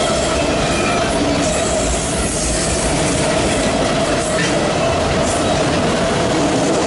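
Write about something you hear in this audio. A long freight train rumbles past close by, its wheels clattering and squealing on the rails.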